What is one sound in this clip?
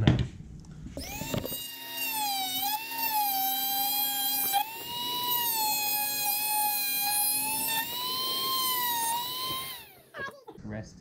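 A small rotary tool whines at high speed as it cuts into a plastic tube.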